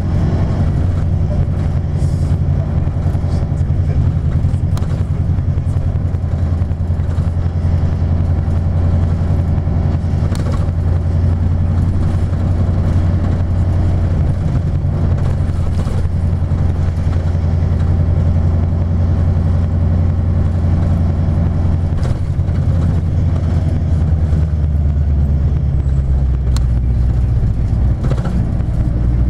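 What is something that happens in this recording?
A vehicle engine rumbles steadily from inside a moving vehicle.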